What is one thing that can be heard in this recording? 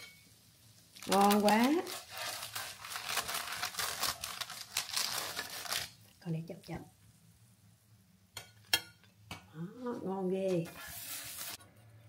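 A metal spatula scrapes and rustles on baking paper.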